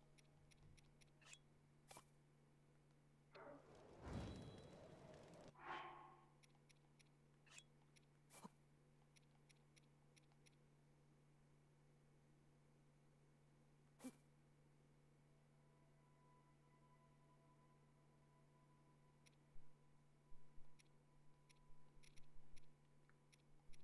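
Short soft clicks tick now and then.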